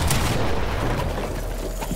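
A pickaxe swings and strikes with sharp thuds.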